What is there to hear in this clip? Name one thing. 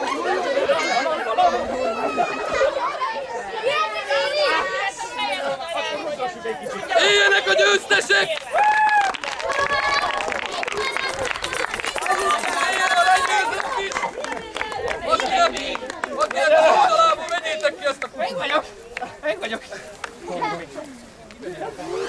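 Several men shout and talk excitedly nearby, outdoors.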